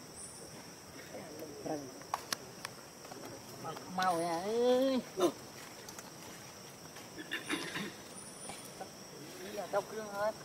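A baby monkey squeals and whimpers close by.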